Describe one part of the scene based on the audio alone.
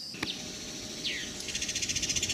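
A songbird calls from the trees.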